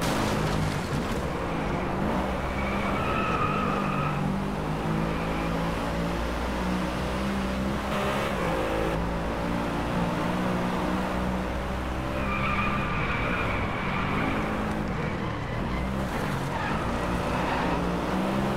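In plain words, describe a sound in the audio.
A car engine roars steadily, rising and falling in pitch as it shifts gears.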